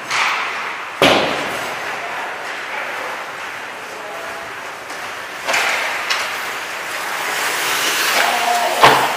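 A hockey puck cracks against a stick.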